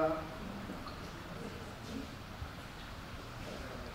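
Water pours from a plastic bottle into a glass.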